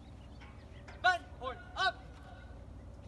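A man shouts a few short, loud calls from a distance outdoors.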